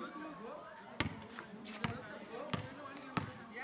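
A basketball bounces on hard pavement.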